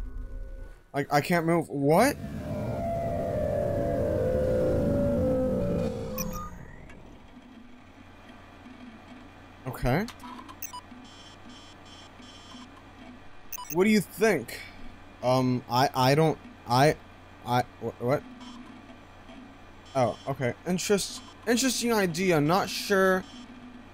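A young man talks with animation into a headset microphone, close up.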